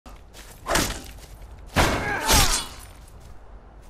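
A sword strikes with heavy clashing blows.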